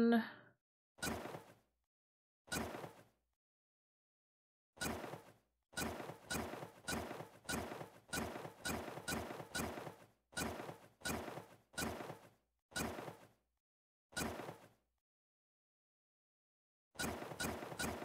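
Short interface clicks sound again and again.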